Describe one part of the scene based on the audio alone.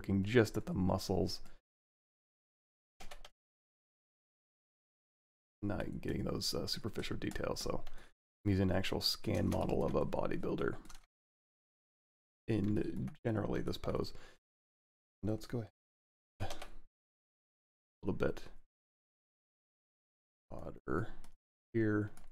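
A man talks calmly and close to a microphone, in bursts with pauses.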